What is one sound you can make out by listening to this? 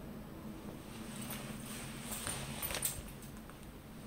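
A leather jacket creaks and rustles with movement.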